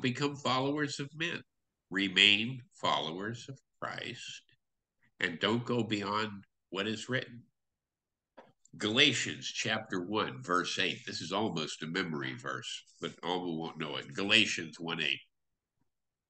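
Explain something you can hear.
A man speaks calmly through an online call, with short pauses.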